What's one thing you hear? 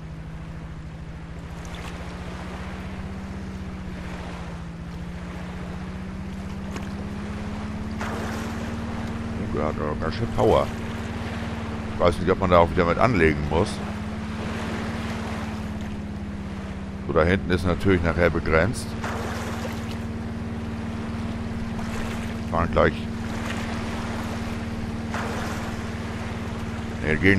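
A motorboat engine hums steadily, rising slightly in pitch.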